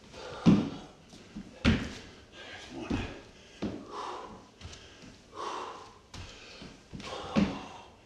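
A man breathes hard with effort.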